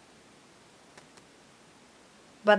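Fingers brush and tap lightly on playing cards.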